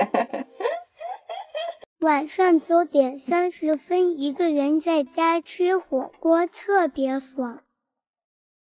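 A young woman talks cheerfully close to a microphone.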